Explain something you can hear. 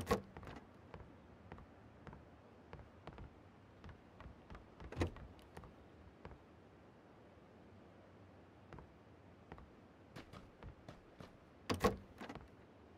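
Doors creak open and bang shut.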